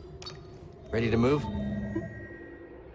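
A soft electronic whoosh sounds.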